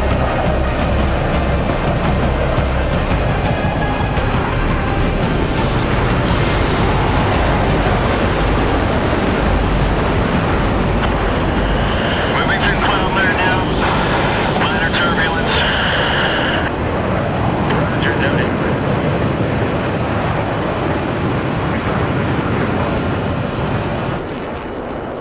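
Wind and rain rush loudly over a jet's canopy.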